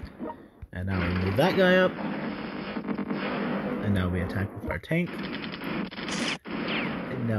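Tank guns fire in rapid bursts.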